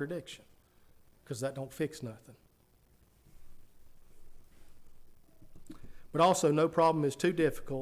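A middle-aged man preaches with feeling through a microphone in an echoing room, pausing between phrases.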